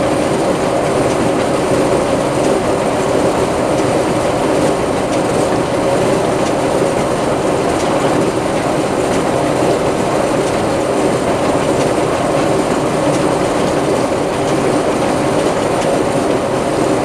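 A baler clatters and thumps as it gathers hay.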